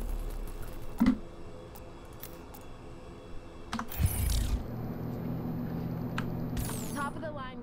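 Short electronic interface clicks and whooshes sound now and then.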